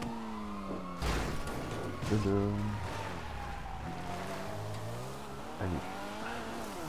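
A car's body thuds and bangs over rocks.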